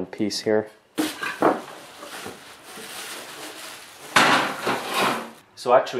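Cardboard and foam packing scrape and thump as a saw is lifted out of a box.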